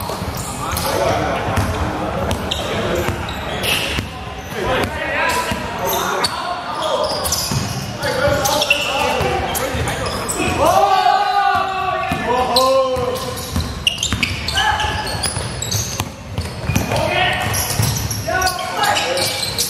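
Young men shout to each other across a large echoing gym.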